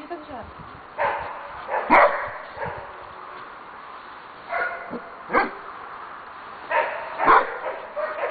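A dog barks loudly in short bursts.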